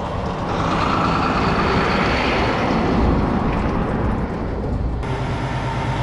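A heavy truck roars past close by and fades away.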